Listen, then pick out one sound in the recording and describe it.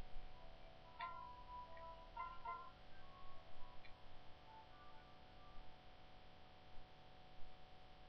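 Soft electronic menu beeps sound from a handheld game.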